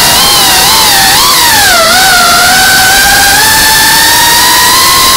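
A drone's motors whine loudly, rising and falling in pitch.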